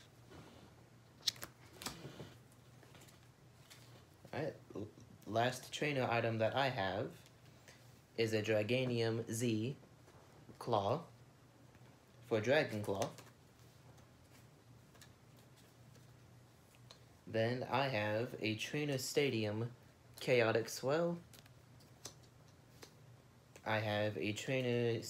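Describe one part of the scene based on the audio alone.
Trading cards rustle and flick in a hand.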